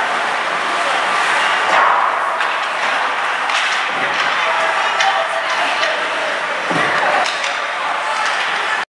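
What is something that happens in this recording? Hockey sticks clack against the ice and each other.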